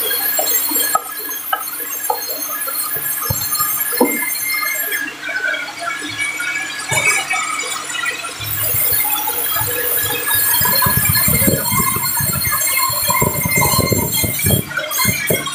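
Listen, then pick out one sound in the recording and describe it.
A sawmill band saw whines as it cuts through a large hardwood log.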